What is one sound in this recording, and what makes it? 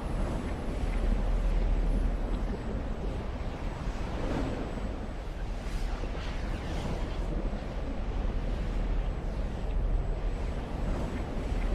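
A strong wind roars and howls outdoors.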